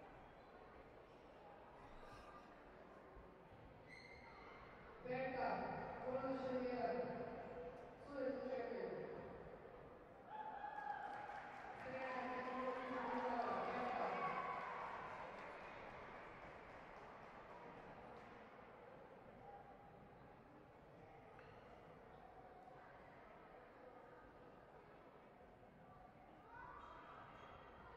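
Bare feet thud and slide on a soft mat in a large echoing hall.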